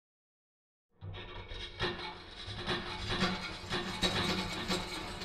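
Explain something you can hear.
Heavy metal gears turn and clank rhythmically.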